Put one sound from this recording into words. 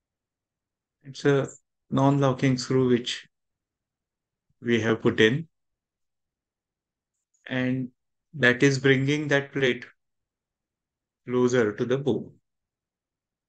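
A man speaks calmly over an online call, in short phrases.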